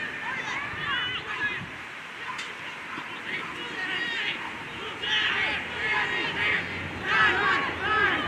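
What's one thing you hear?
Young women shout to each other in the distance outdoors.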